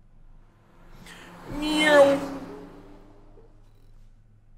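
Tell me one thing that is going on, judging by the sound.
A car engine roars past at speed.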